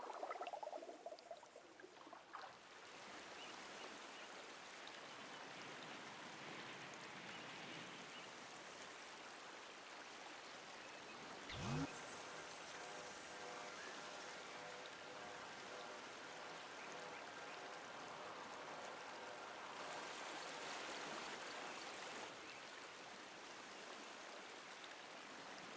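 A river rushes and splashes steadily over rocks.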